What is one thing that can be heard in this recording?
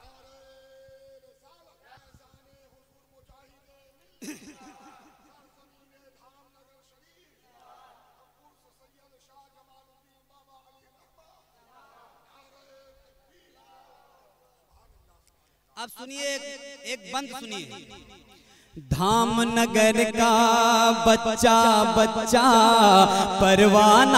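A man sings through a microphone and loudspeakers, faint at first and then loud and full.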